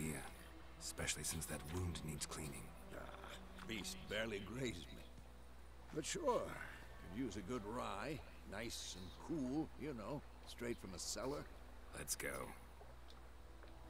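A middle-aged man answers in a deep, rough voice with animation.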